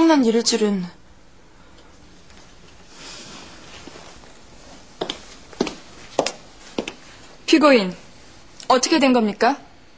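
A young woman speaks calmly and firmly.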